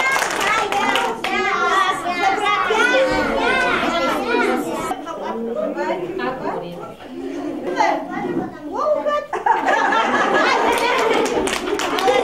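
A woman sings in a warm, lively voice in a room with some echo.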